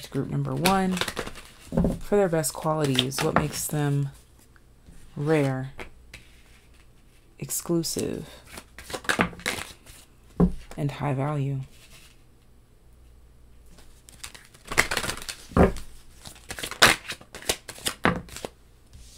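Cards shuffle and tap softly on a table.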